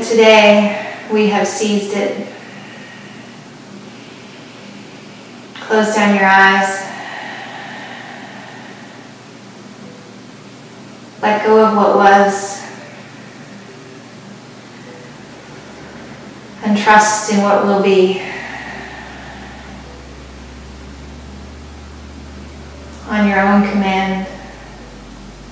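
A woman speaks calmly and softly in short phrases with long pauses, close by.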